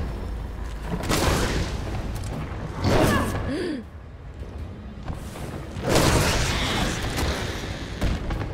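Loud explosions boom and roar.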